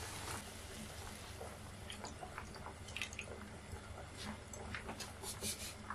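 Liquid pours into a pan.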